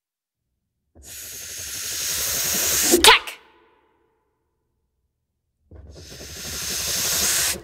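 A scraping, rushing sound from a hand-played instrument swells louder in two long bursts.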